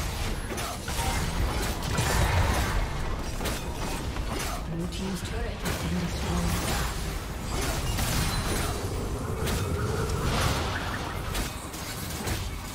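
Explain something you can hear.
Magic spells blast and crackle in a hectic fight.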